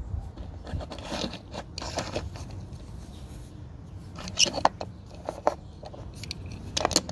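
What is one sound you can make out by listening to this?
A small toy car's plastic wheels roll and clatter on a hard tabletop.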